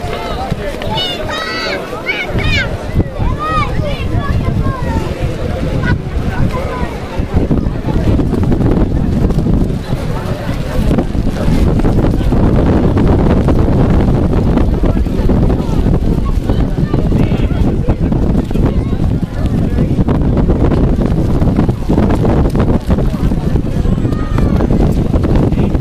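A crowd of spectators chatters and shouts outdoors.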